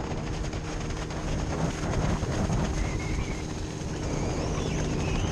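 A motorboat engine drones ahead.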